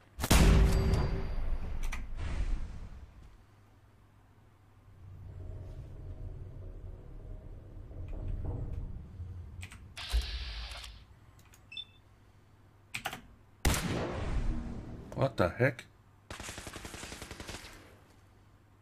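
A laser rifle fires with sharp zaps and blasts.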